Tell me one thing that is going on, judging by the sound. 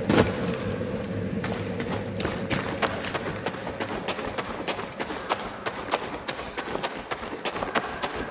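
Footsteps splash quickly through shallow water.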